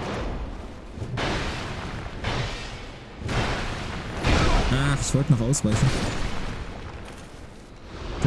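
Heavy weapons clash and thud in a fight.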